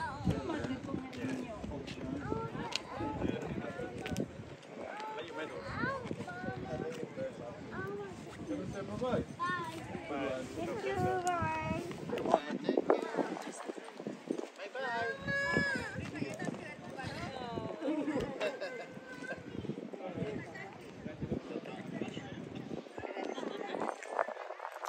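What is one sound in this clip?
Men and women talk and chatter nearby outdoors.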